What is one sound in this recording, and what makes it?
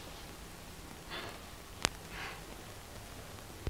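A young woman speaks softly and anxiously.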